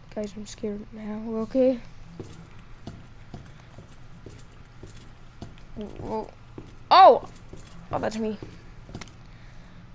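Footsteps tap softly on a hard floor.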